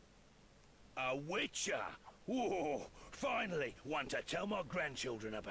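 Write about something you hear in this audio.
A man speaks in a gruff, animated voice, close by.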